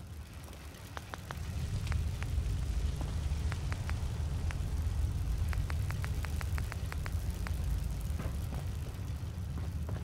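Soft menu clicks tick as items are browsed.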